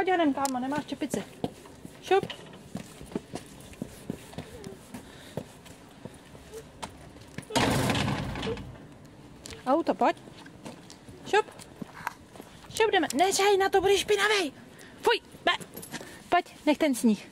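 A toddler babbles and calls out nearby.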